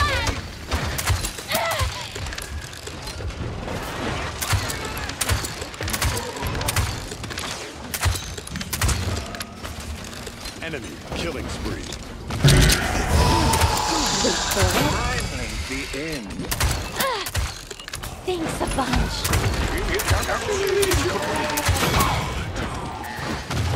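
Game blasts and explosions boom.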